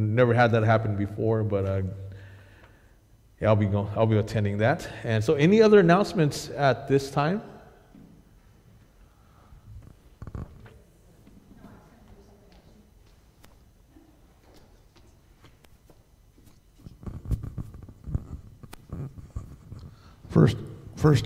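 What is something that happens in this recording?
A man speaks through a microphone in a large echoing hall, pausing now and then.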